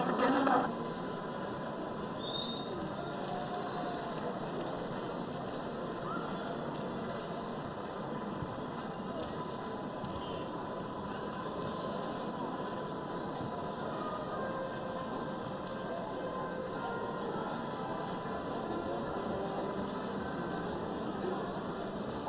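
A stadium crowd murmurs and cheers in the distance.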